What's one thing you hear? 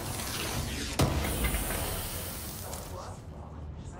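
A wooden crate smashes and splinters apart.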